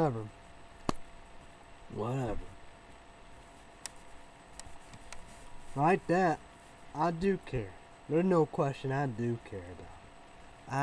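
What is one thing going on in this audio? A young man talks casually close by, in short bursts.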